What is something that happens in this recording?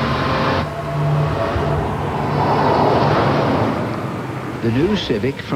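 A car speeds across dry, dusty ground.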